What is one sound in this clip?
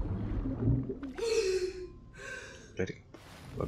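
A young woman gasps for breath.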